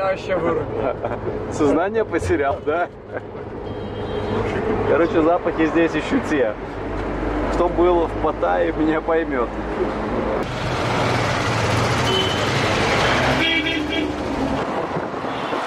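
A bus engine rumbles steadily.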